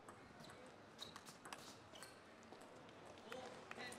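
A table tennis ball clicks back and forth between paddles.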